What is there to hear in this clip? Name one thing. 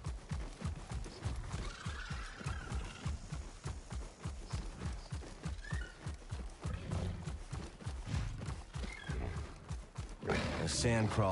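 Heavy clawed feet pound rapidly on dry ground.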